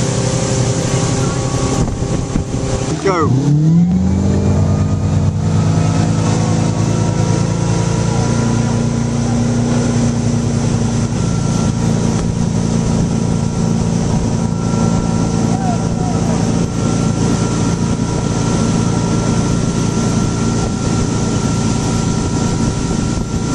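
A motorboat engine drones loudly, revving up sharply and then holding steady.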